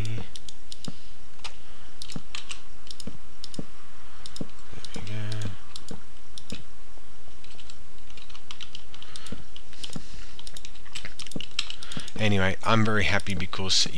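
Wooden fence pieces knock into place one after another.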